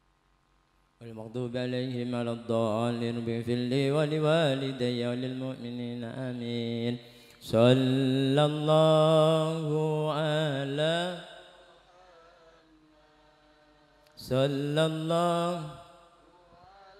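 A man sings loudly through a microphone in a drawn-out, wavering chant.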